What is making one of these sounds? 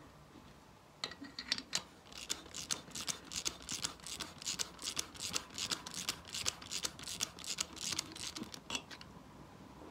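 A ratchet wrench clicks rapidly as it turns.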